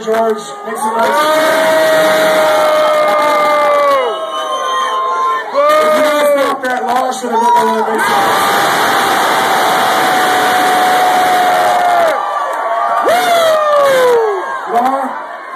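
A man shouts with long, drawn-out calls into a microphone over loudspeakers.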